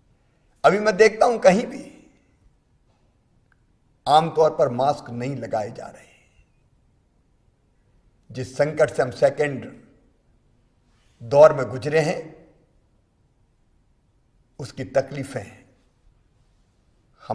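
A middle-aged man speaks firmly and with emphasis into a close microphone, in short bursts with pauses.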